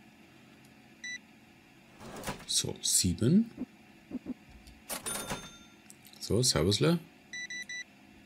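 A checkout scanner beeps sharply.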